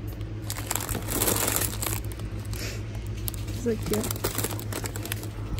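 A plastic snack bag crinkles as a hand handles it.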